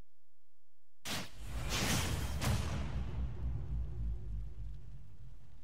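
A video game sound effect whooshes and booms.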